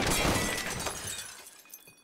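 A young woman exclaims in frustration.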